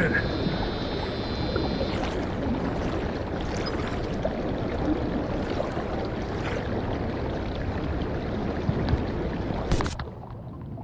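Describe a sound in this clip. Water rushes and splashes along a tiled channel.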